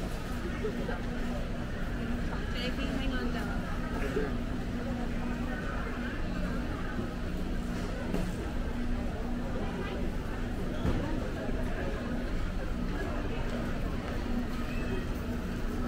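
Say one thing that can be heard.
Shopping cart wheels rattle over a hard floor.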